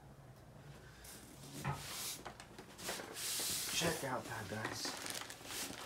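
Plastic wrapping crinkles as a boxed figure is handled.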